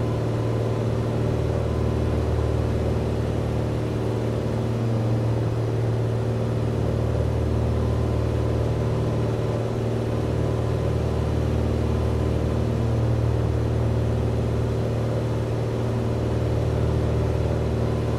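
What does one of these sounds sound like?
A small propeller plane's engine drones steadily from inside the cabin.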